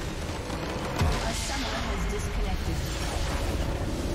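A structure in the game crumbles and explodes.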